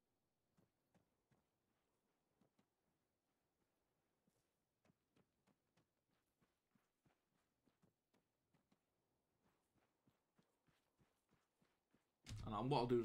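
Footsteps crunch softly on dirt.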